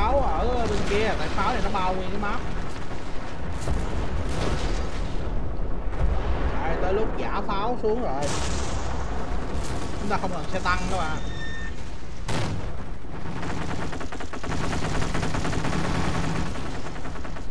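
Gunfire and explosions rumble in a distant battle.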